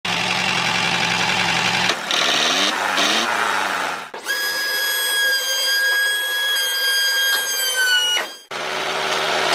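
A small electric motor whirs as a toy tractor drives along.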